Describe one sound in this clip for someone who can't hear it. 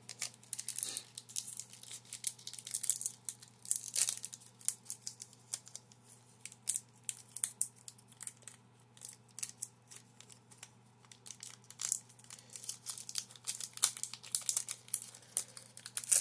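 Cards and foil wrappers rustle and crinkle close by.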